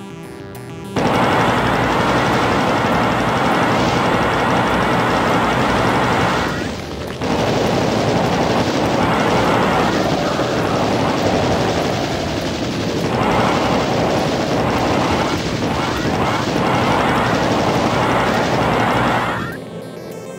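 A plasma gun fires rapid buzzing energy bolts.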